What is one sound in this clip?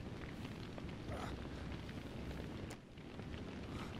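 A young man groans in pain close by.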